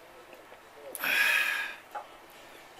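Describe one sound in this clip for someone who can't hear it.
A man loudly slurps soup from a bowl.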